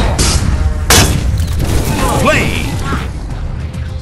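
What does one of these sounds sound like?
A loud explosive slam bursts out.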